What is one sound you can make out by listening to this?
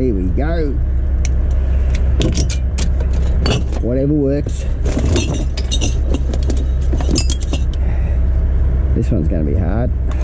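Glass bottles clink and rattle against each other.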